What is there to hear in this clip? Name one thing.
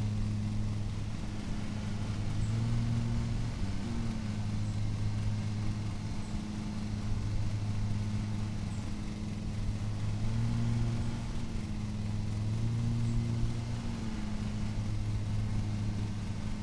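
A riding lawn mower engine hums steadily.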